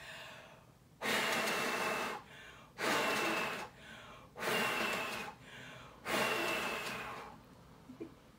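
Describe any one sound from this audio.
A young girl blows hard in several long puffs close by.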